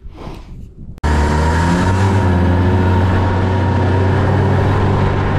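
A snowmobile engine hums steadily while driving.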